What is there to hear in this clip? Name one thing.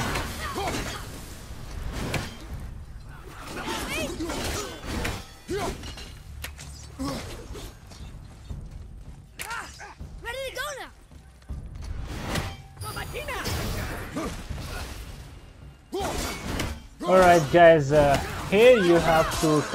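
Axe blows strike enemies with sharp impacts.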